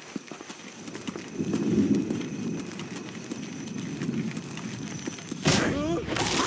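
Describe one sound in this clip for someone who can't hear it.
Footsteps shuffle softly over stone.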